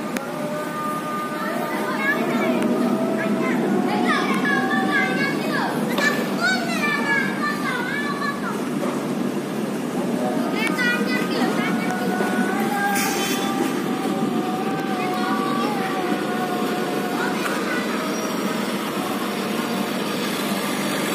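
A train rumbles along the tracks, growing louder as it passes close by.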